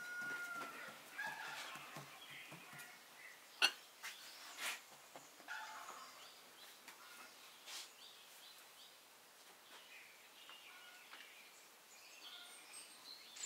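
Hands press and pat soft dough on a wooden board.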